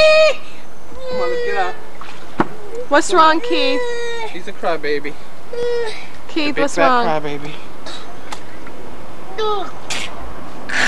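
Young children shout and squeal playfully nearby.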